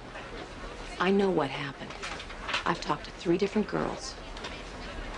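A second woman speaks firmly nearby.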